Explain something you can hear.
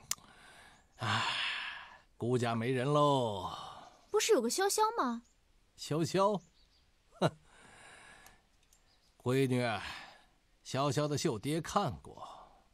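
A middle-aged man speaks warmly and animatedly, close by.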